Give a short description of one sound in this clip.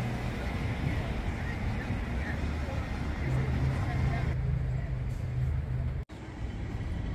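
Traffic hums along a city street.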